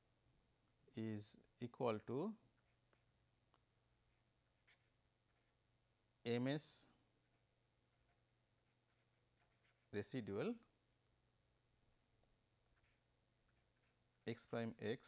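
A pen scratches softly on paper.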